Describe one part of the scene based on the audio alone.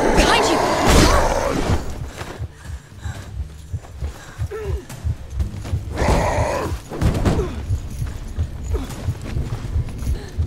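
Heavy thuds and footsteps land on the ground.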